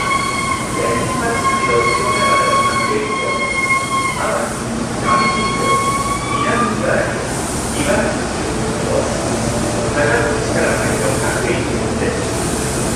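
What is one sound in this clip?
An electric train hums while idling beside the platform in a large echoing space.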